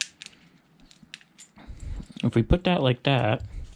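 Small metal parts click softly in hands.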